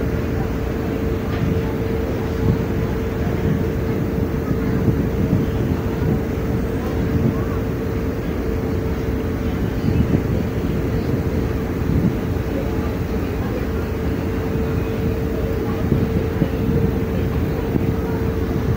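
Strong wind rumbles and buffets outdoors.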